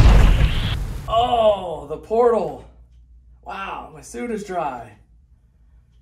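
A middle-aged man talks with animation nearby.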